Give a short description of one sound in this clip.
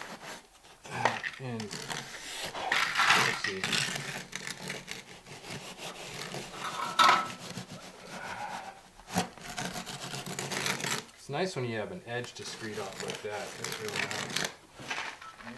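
A straightedge scrapes and drags across wet mortar.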